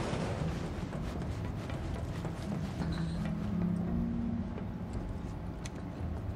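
Footsteps clank on a metal grating.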